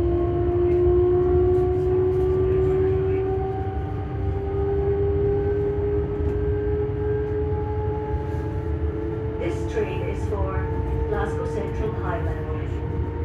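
A train rumbles low and steadily along the tracks.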